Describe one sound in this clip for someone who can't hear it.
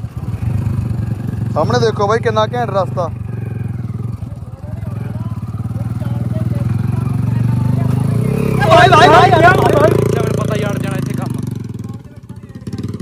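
A motorcycle engine rumbles steadily up close as it rides over a rough dirt track.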